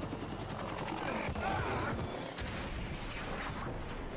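A helicopter crashes and explodes with a loud boom.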